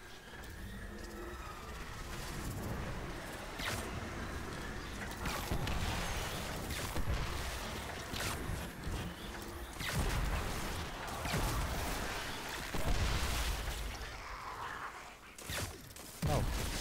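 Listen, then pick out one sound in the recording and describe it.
Arrows loose from a bow with sharp snaps.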